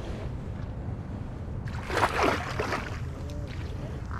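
Water laps and splashes against a rocky bank.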